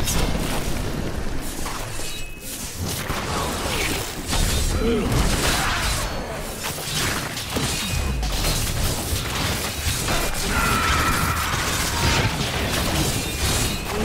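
Magic blasts and weapon strikes crash in a fantasy battle.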